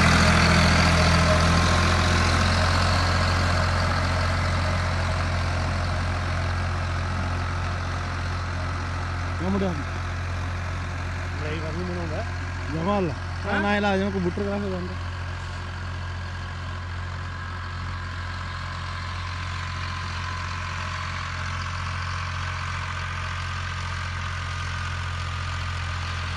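A tractor engine rumbles steadily close by, then grows more distant.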